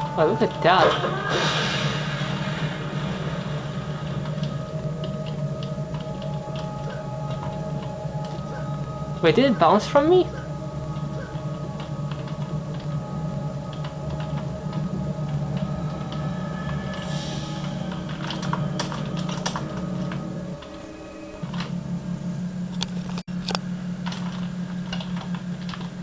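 Game music and effects play through desktop speakers.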